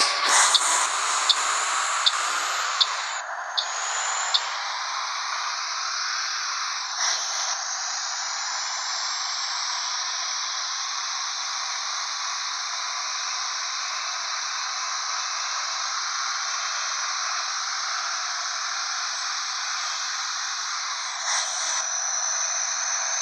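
A bus engine hums steadily as the bus speeds up.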